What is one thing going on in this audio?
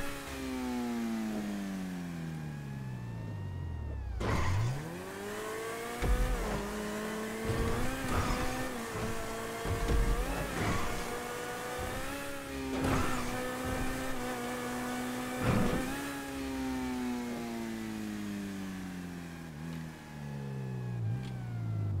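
A racing car engine roars, dropping in pitch, then revving again through gear changes.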